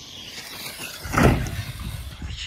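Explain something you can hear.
A toy car thuds as it lands after a jump.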